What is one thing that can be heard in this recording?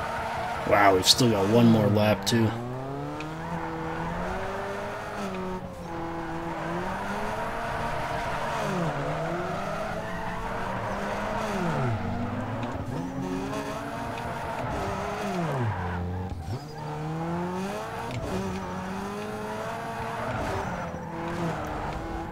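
Tyres screech while sliding around bends.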